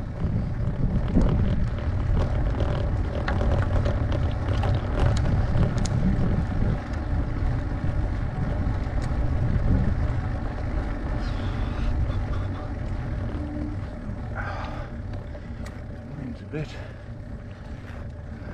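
Bicycle tyres roll over tarmac.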